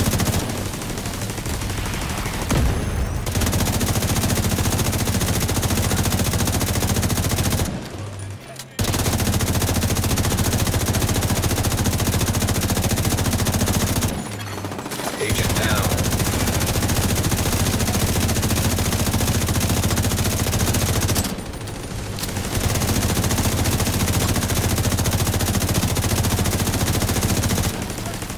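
A rifle fires in long, rapid bursts with short pauses between them.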